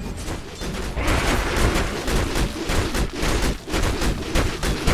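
Game characters clash with rapid hits and impacts.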